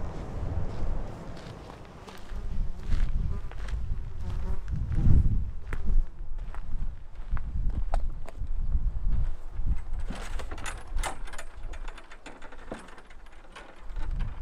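Wind blows outdoors across the microphone.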